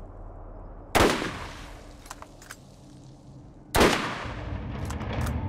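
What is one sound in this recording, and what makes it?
A sniper rifle fires two loud, sharp shots that echo away.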